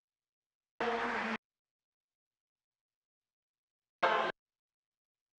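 A man speaks in short bursts in an echoing hall.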